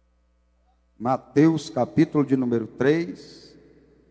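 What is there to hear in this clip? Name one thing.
A man speaks loudly and with animation into a microphone, heard through loudspeakers in a large echoing hall.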